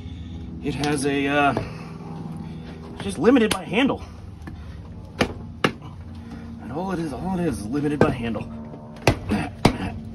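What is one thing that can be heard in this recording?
A rubber mallet knocks sharply on a wooden wedge.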